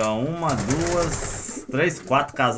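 A pigeon's wings flap loudly.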